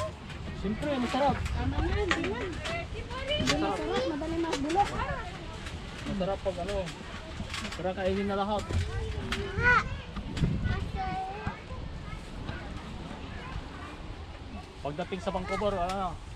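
Leaves rustle as fruit is picked from a tree.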